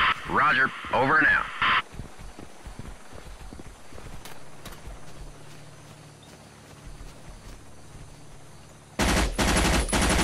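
Footsteps tread softly through grass.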